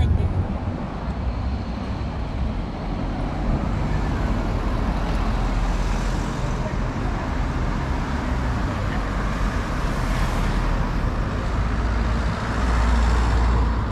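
Cars drive past.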